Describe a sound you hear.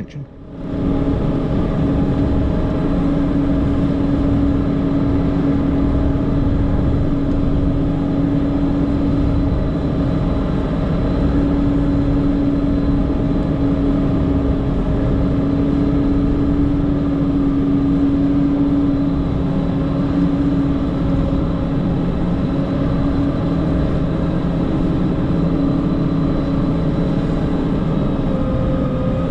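A snow blade pushes and scrapes through snow.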